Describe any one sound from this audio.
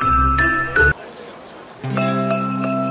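A small fountain trickles water.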